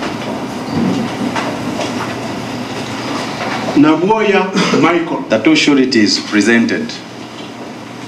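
A middle-aged man reads out into a microphone.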